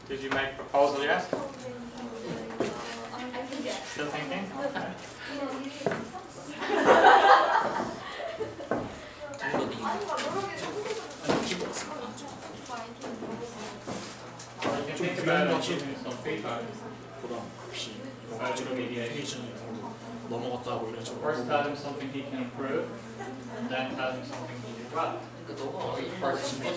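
Young men talk and laugh nearby.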